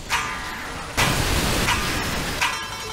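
A loud blast explodes with a roar.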